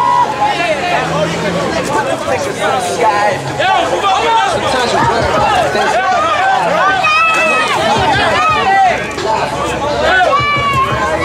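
A crowd of young men and women shouts and cheers close by, outdoors.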